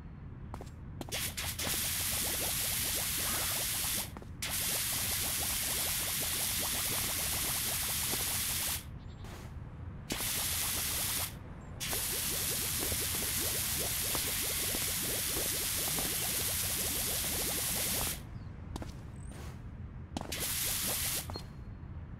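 A pressure washer sprays water in a steady, hissing rush, stopping and starting again.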